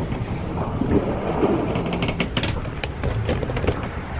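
Waves surge and splash against a boat's hull.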